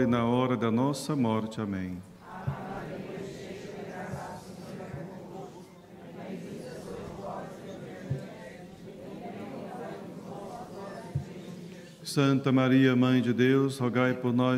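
A man chants through a microphone in an echoing hall.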